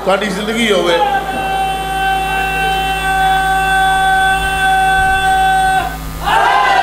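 A middle-aged man holds a long, drawn-out sung note through a microphone.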